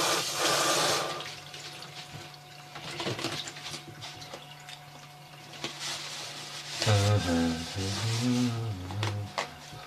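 Dishes clatter and scrape in a sink.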